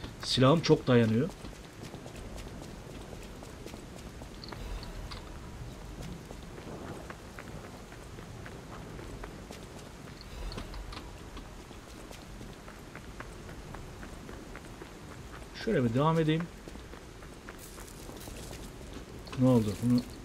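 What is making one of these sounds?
Footsteps run across cobblestones.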